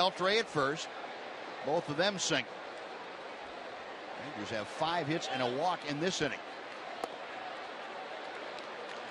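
A crowd murmurs steadily in a large outdoor stadium.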